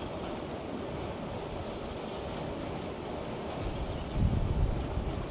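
Wind buffets the microphone outdoors, gusting harder near the end.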